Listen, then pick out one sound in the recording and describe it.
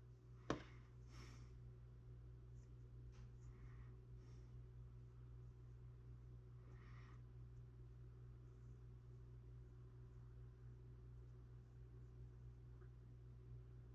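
Fingers press and rub soft clay with faint scraping.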